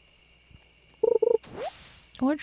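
A short bright electronic chime plays as a fish is caught.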